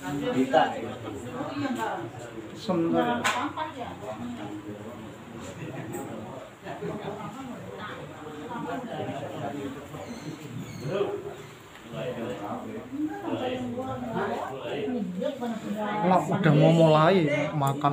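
An elderly man speaks calmly to a gathering.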